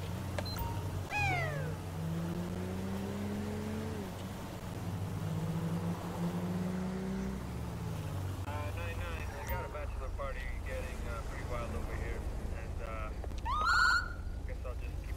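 A police siren gives short rising chirps.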